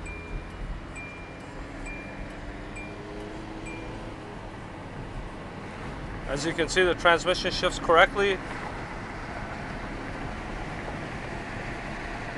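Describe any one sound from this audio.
Tyres rumble on a paved road.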